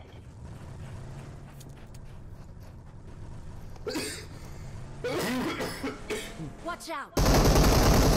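A car engine hums and roars while driving.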